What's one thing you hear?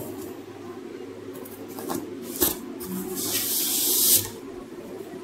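Foam packing squeaks and scrapes.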